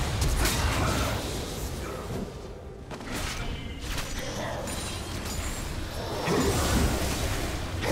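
Game spell effects whoosh and crackle during a battle.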